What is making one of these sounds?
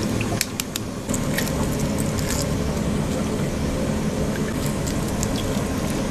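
Eggshells crack and crunch as they are peeled.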